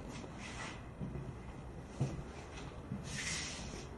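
Footsteps thud softly on a floor.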